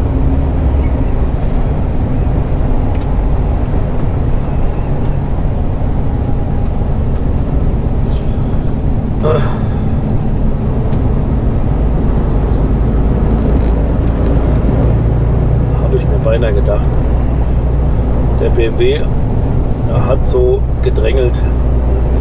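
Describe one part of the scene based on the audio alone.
A truck engine drones steadily from inside the cab.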